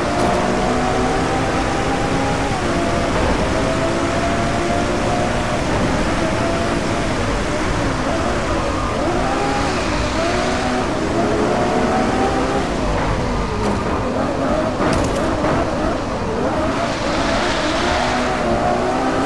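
Windscreen wipers swish across glass.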